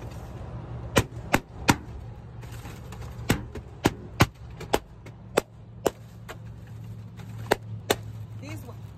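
Balloons pop with sharp bangs.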